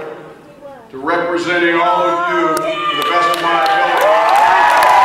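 A man speaks loudly into a microphone to a crowd.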